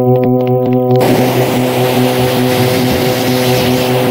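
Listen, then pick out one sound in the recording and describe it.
A rocket pack roars with a rushing hiss.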